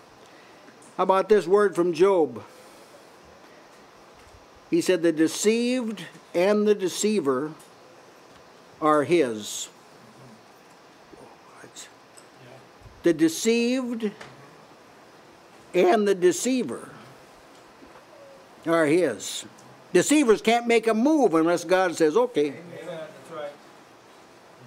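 An elderly man preaches into a microphone in short forceful bursts, pausing between phrases.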